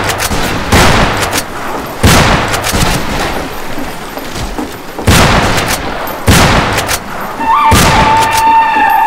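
Shotgun blasts boom loudly, one after another.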